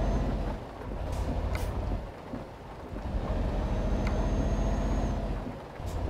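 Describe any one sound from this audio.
Windscreen wipers swish across glass.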